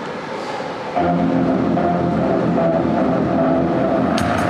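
Music plays loudly over loudspeakers.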